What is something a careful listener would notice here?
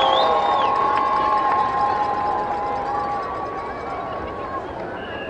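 Drums tap lightly along with a marching band.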